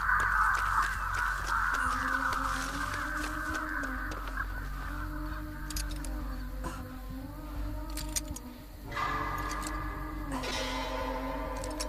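Tall reeds rustle as someone pushes through them.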